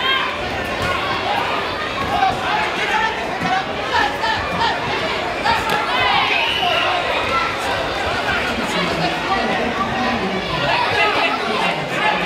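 Punches thud against fighters' bodies.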